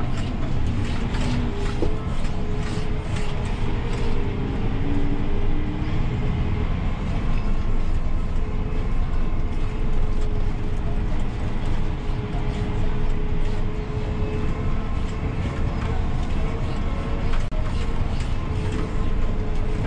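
A tractor engine rumbles steadily, heard from inside the cab.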